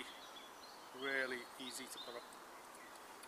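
A man speaks briefly and calmly, close by, outdoors.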